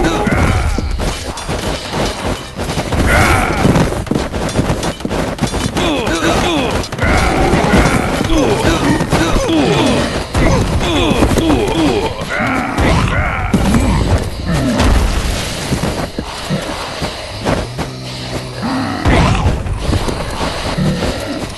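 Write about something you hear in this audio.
Many weapons clash and strike in a crowded battle.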